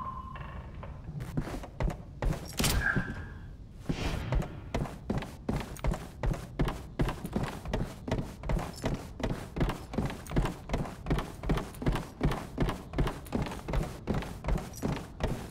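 Heavy footsteps thud steadily on wooden floor and stairs.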